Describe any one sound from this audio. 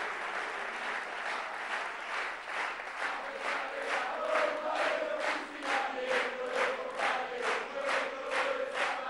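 A large crowd claps in a steady rhythm.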